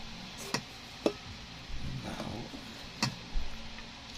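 A hand scoops rice against the side of a metal pot.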